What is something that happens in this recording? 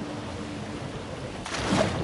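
Water splashes as a shark thrashes at the surface.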